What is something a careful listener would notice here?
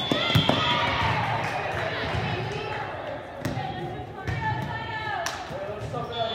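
A volleyball is struck with sharp smacks in a large echoing hall.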